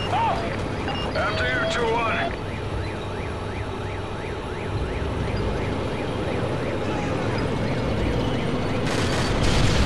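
A tank engine rumbles nearby.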